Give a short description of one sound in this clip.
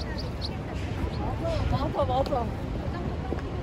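Young women chat briefly as they pass close by.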